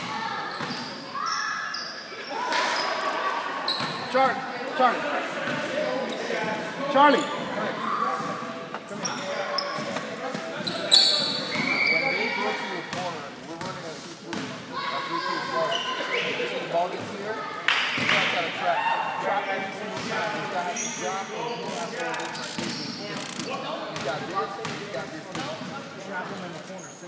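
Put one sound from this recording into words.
A crowd of young people talk and shout in a large echoing gym.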